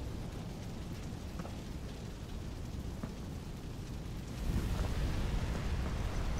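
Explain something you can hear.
Fire roars and crackles with a low rumble.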